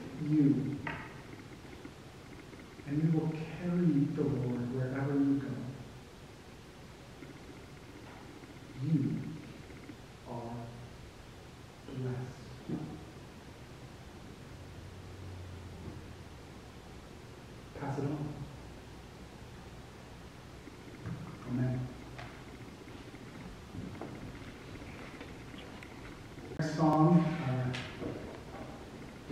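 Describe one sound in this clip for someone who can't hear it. A man speaks calmly through a microphone, with long pauses, in an echoing hall.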